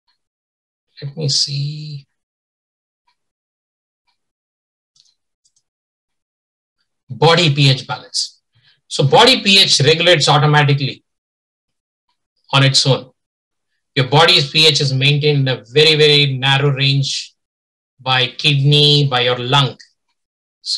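A man speaks calmly over an online call, close to the microphone.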